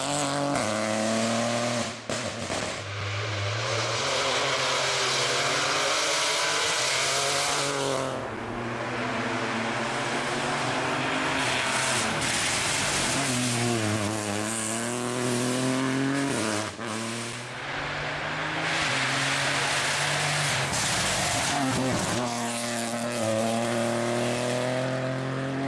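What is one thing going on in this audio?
A rally car engine revs hard and roars past, rising and falling in pitch as gears change.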